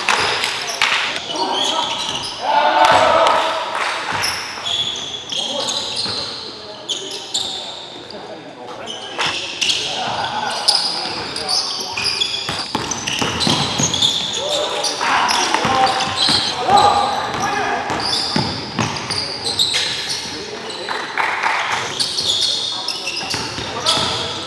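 Sneakers squeak sharply on a hard court floor.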